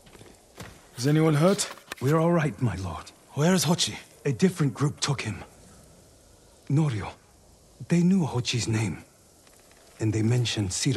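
A man speaks calmly and respectfully.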